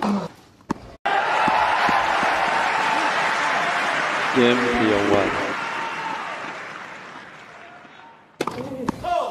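A large crowd applauds loudly, then the applause fades.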